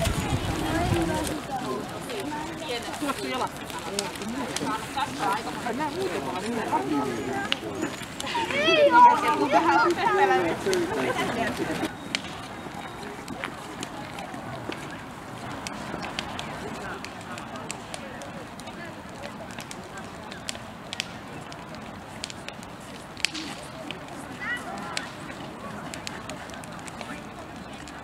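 A bonfire crackles and pops outdoors.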